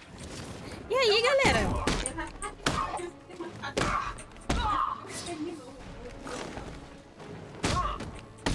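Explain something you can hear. Fists thud as punches land in a fight.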